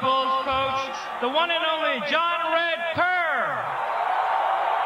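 A man shouts with excitement through a loudspeaker.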